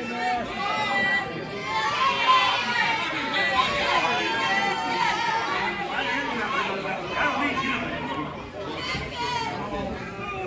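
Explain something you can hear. A crowd of people chatters and calls out indoors.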